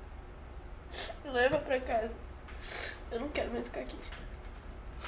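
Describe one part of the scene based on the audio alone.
A young woman speaks tearfully and close by.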